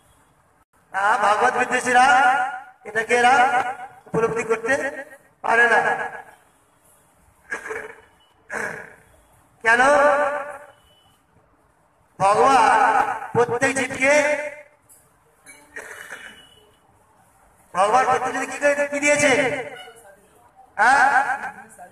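A man speaks into a microphone in phrases with pauses, heard through a loudspeaker.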